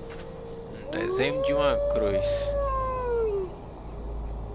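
A wolf howls nearby.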